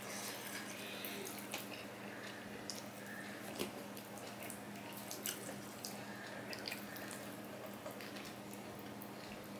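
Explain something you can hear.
Fingers squish and mix food on a metal plate.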